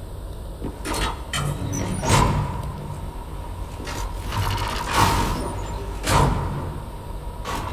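A metal lift gate rattles and clanks as it slides open and shut.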